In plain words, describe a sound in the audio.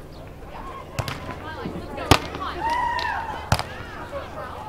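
A volleyball is struck with sharp slaps of hands and forearms.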